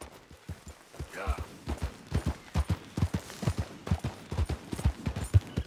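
A horse's hooves thud at a quickening trot on grass.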